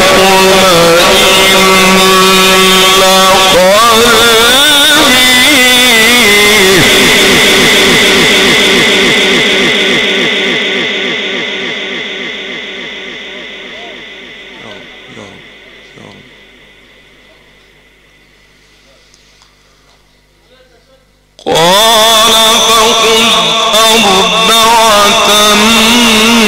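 A man chants loudly and melodically through a microphone with echo.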